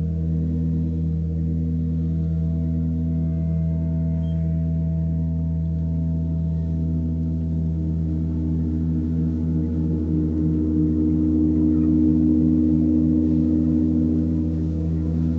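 A large gong hums in a deep, steady drone that slowly swells.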